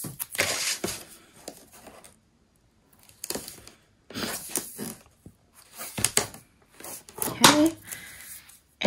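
Paper rustles and slides.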